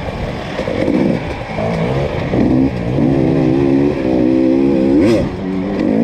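A dirt bike engine revs and whines close by, rising and falling in pitch.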